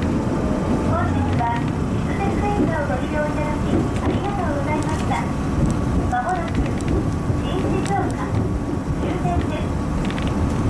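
Train wheels squeal and screech over the track switches.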